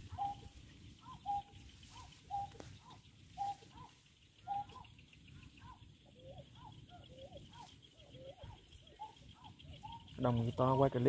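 A bird chirps repeatedly in short, even calls.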